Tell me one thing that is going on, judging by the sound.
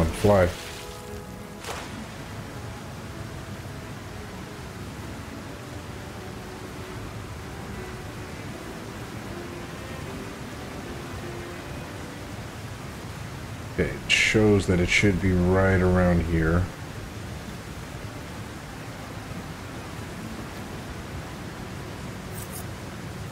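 Water splashes softly as someone swims steadily.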